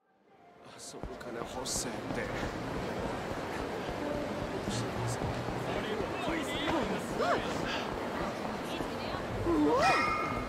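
A busy street crowd murmurs in the background.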